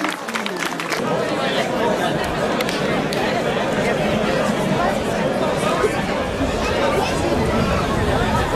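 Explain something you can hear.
A crowd of men and women chatter loudly outdoors.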